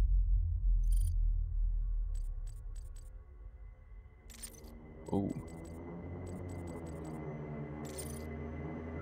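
Game menu sounds click as options are selected.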